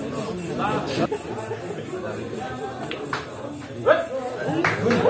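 Pool balls click against each other.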